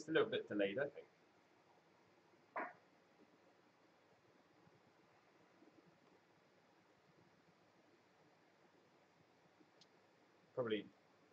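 A young man speaks briefly and casually into a nearby microphone.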